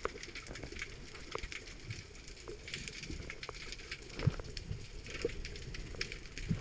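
Water swirls and rumbles past the ear, muffled and low.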